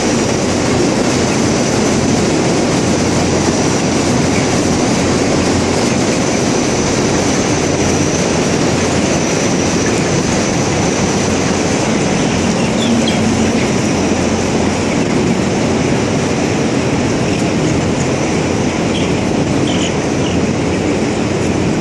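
Many chickens cluck and chirp steadily in a large hall.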